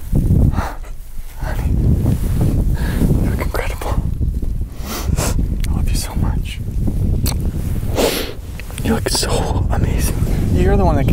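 Wind buffets a microphone outdoors.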